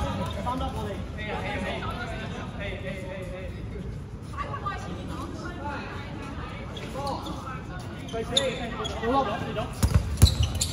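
Many young people shout and call out in a large echoing hall.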